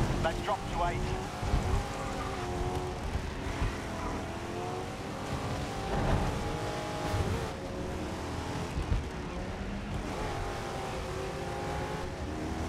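A hot rod engine roars at full throttle, rising and falling in pitch as it shifts gears.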